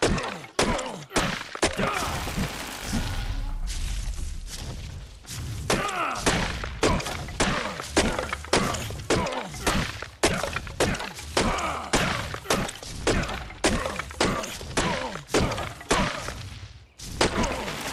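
Fists thump repeatedly against a tree trunk.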